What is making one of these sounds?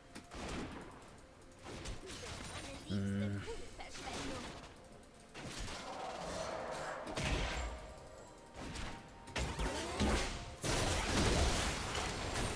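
Spell effects burst and crackle during a fight.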